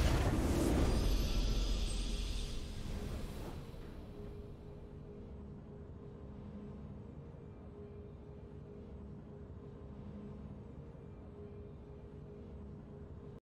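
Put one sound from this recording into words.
A triumphant victory tune plays softly.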